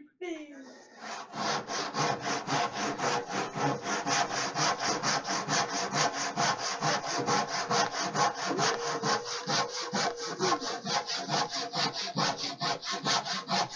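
A hand saw cuts through wood with fast, rhythmic strokes.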